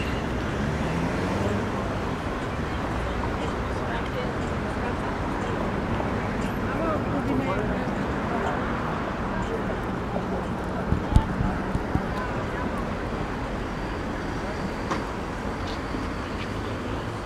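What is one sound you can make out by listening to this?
City traffic hums steadily outdoors.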